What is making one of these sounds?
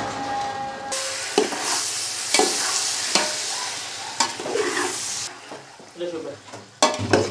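A spoon scrapes and knocks against a metal pot.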